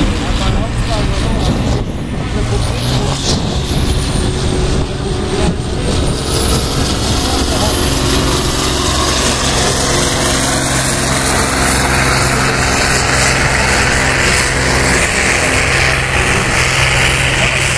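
A tractor engine roars loudly at high revs.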